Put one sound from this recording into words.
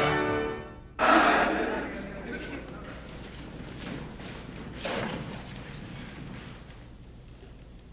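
Many feet shuffle and step on a wooden floor in an echoing hall.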